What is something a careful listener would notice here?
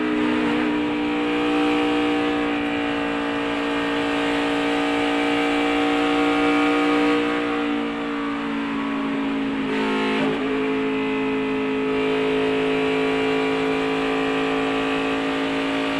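A race car engine roars loudly at high speed, close by.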